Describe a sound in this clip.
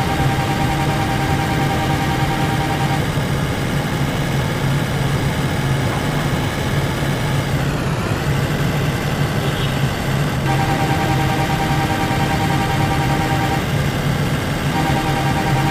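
A truck's diesel engine drones steadily.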